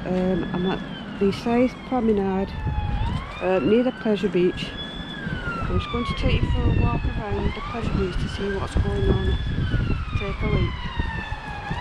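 A middle-aged woman speaks calmly, close to the microphone.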